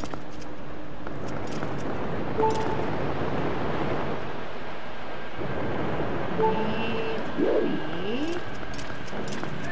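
Footsteps tap lightly on a stone floor.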